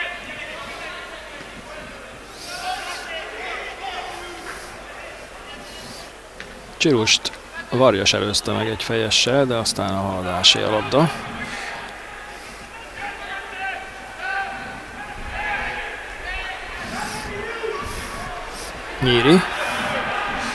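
A large crowd chants and cheers in an open stadium.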